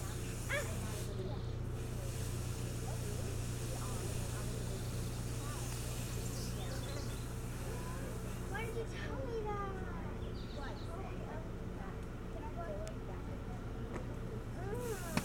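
An osprey gives short high chirps.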